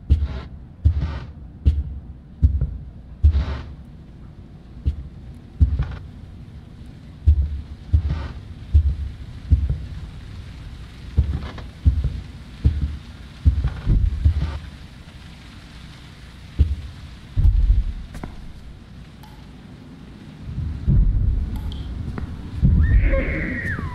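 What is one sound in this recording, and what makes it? Heavy footsteps thud slowly across a wooden floor.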